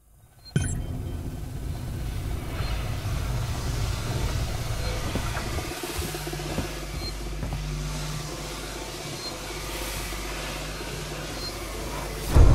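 Footsteps walk slowly on a metal floor.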